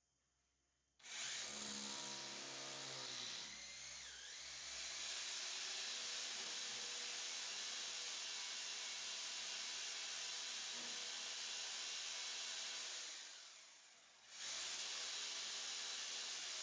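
An electric drill bores into a masonry wall.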